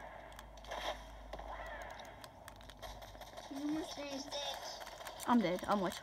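Assault rifle fire rattles from a video game.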